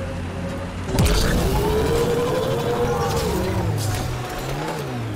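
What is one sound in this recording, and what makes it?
A vehicle crashes loudly into a slope.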